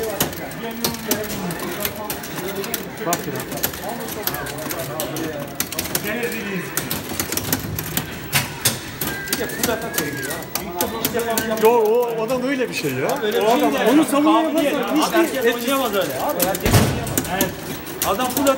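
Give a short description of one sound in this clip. Upbeat game music plays from an arcade cabinet's speaker.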